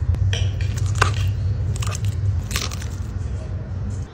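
A fork scrapes across a plate.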